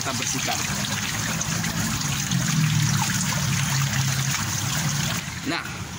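Water splashes as a net is dipped and scooped through a pond.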